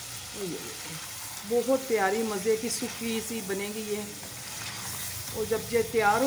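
A wooden spoon stirs and scrapes food in a metal pan.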